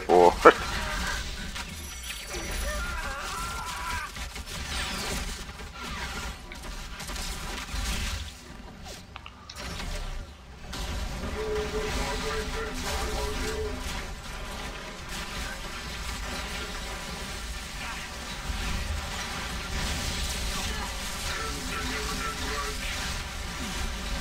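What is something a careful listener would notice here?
Laser beams blast and hum.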